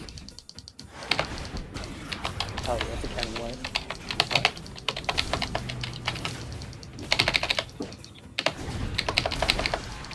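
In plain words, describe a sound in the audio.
Magic spells crackle and burst in rapid combat.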